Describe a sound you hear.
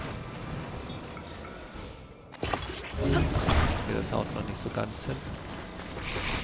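A soft magical hum and whoosh sound as floating pieces are moved and fused together.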